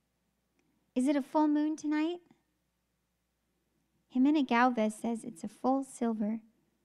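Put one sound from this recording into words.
A young woman sings softly into a microphone in short phrases.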